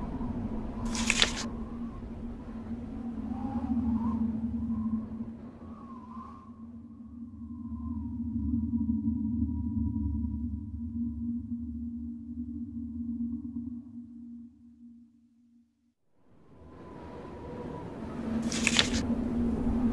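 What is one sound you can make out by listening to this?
A book page turns with a quick rustle.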